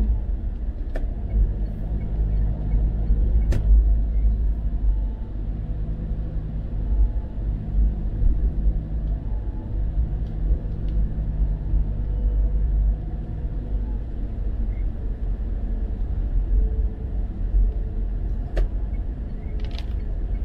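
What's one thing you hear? Raindrops tap now and then on a windscreen.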